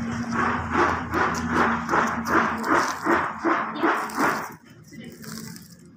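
A plastic sack rustles as a hand handles it.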